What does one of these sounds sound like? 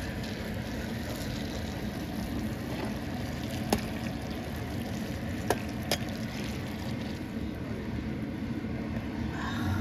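Hot liquid pours into a container.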